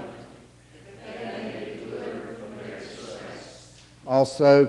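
A congregation of men and women recites a response together.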